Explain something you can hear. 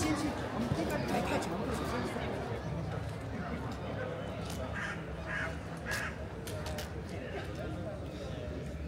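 A crowd of people chatters nearby outdoors.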